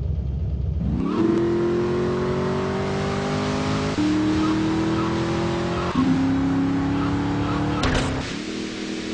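A car engine revs hard and climbs through its gears.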